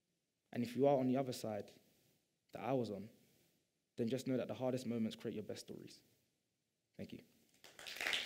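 A young man speaks calmly into a microphone to an audience.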